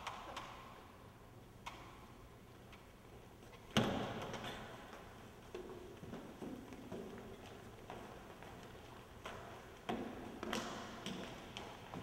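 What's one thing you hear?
Footsteps tap and shuffle across a wooden floor.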